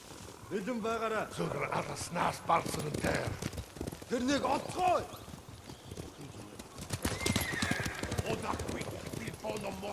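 Horses walk with hooves thudding on soft ground.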